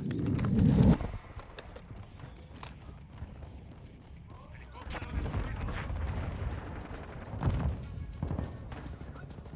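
Gunshots crack from a rifle in a video game.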